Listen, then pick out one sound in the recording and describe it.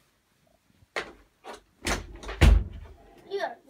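Bumps and thuds sound close by.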